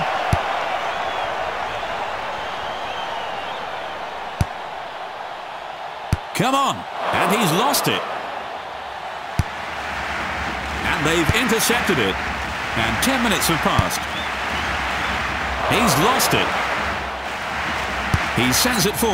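A football is kicked with short, dull thuds.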